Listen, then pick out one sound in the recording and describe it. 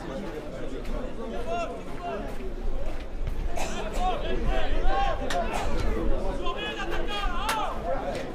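A crowd of spectators shouts and calls out outdoors.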